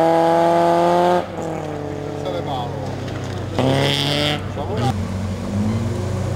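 A rally car engine revs hard and roars as it speeds along a gravel road.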